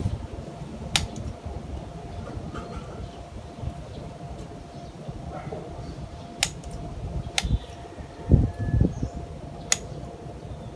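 Scissors snip through small twigs.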